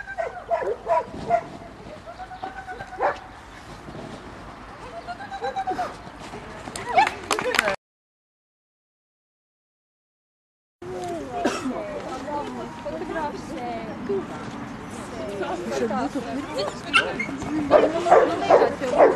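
A woman calls out commands to a dog outdoors.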